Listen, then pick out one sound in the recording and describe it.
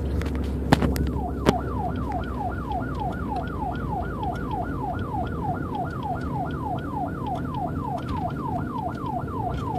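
A police siren wails in a fast, rising and falling yelp close ahead.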